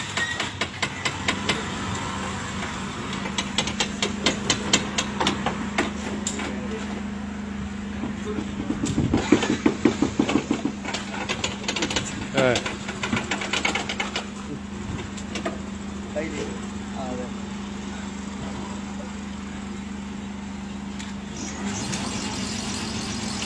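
A fuel pump motor hums steadily.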